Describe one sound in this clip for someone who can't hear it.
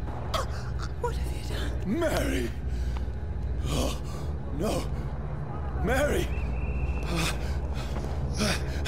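A man speaks in anguish, close by, with a breaking voice.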